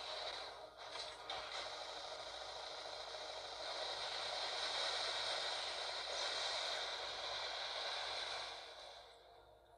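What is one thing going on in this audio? Heavy guns fire in loud, rapid bursts.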